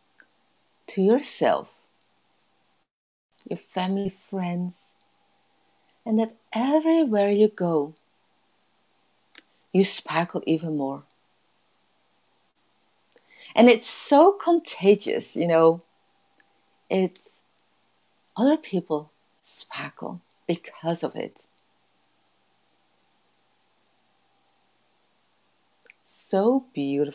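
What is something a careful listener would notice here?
A woman speaks calmly and expressively into a close microphone, in bursts with pauses.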